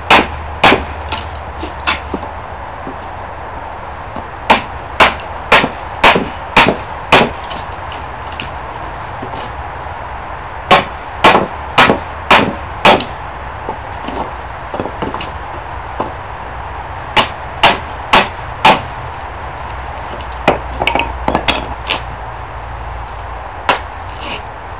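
A hammer strikes wood in sharp, repeated blows.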